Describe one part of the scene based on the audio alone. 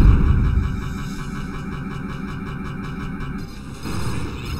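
Rapid laser blasts fire in quick bursts.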